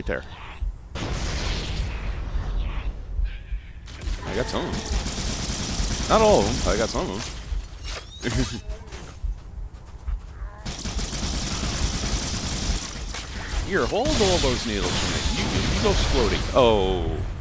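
A weapon fires in bursts with a hissing whoosh.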